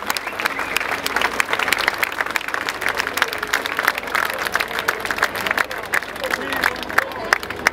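A crowd cheers and chatters.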